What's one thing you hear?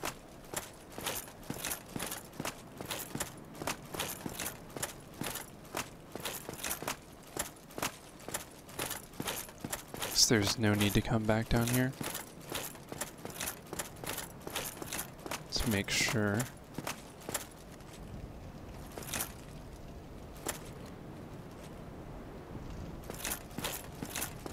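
Armored footsteps clank quickly on stone.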